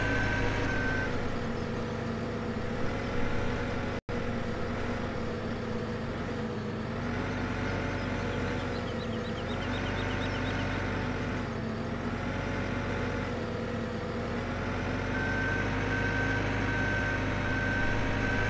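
A loader's reversing alarm beeps in a steady rhythm.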